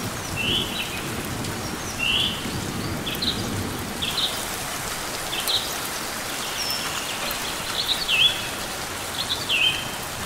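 A small bird chirps in short, high, repeated calls.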